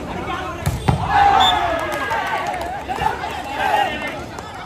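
Young men shout and cheer loudly after a rally.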